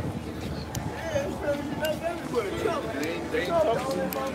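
Men and women chat nearby in a busy outdoor crowd.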